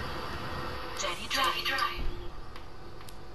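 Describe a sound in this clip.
Bus doors hiss open.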